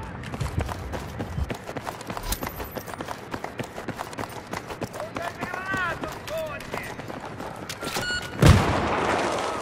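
Footsteps run on concrete.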